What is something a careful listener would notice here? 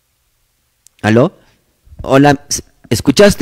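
A man speaks into a microphone in short phrases.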